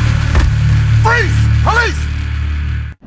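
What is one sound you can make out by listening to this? A man cries out in a strained voice.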